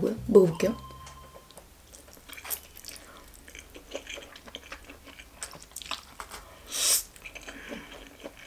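A young woman chews noodles wetly.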